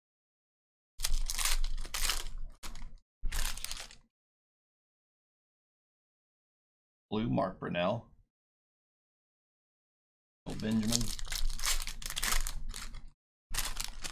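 Foil card wrappers crinkle and tear open.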